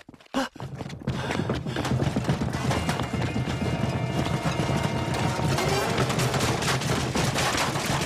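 Many footsteps run on stone.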